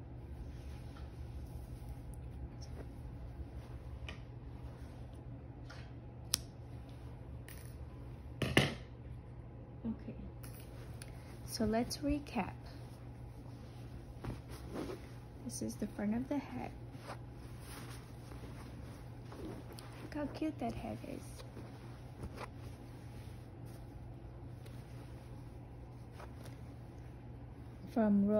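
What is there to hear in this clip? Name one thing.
Hands softly rustle and rub a knitted wool hat.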